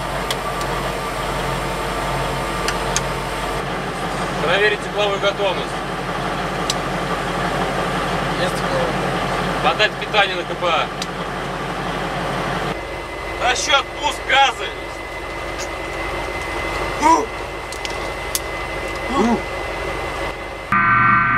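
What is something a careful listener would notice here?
A vehicle engine hums steadily throughout.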